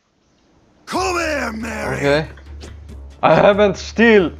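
A man shouts roughly.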